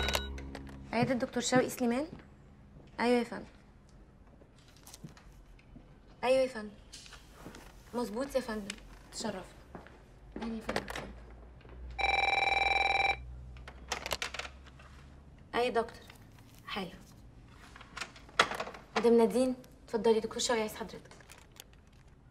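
A young woman talks calmly on a telephone nearby.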